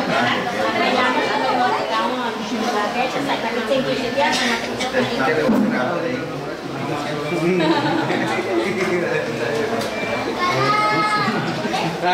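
Several adults chat nearby in a room with overlapping voices.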